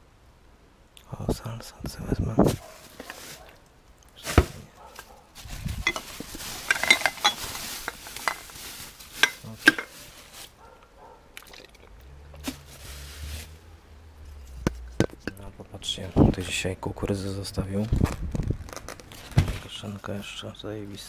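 Plastic bags rustle and crinkle close by.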